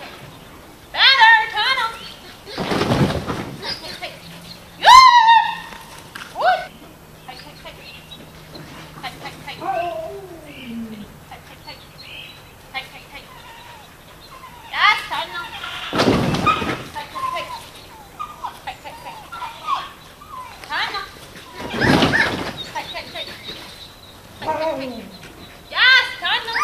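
A young woman calls out and praises a dog with high, animated encouragement.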